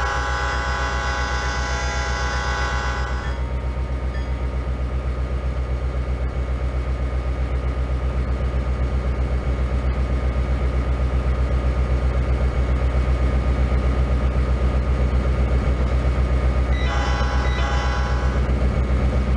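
A diesel locomotive's air horn blows.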